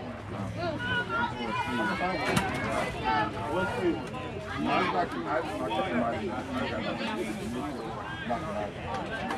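Young girls chatter and cheer close by, outdoors.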